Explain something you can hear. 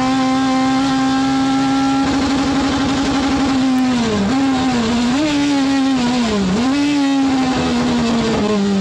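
A race car engine roars loudly from inside the cockpit, its pitch dipping and rising as the driver shifts and brakes.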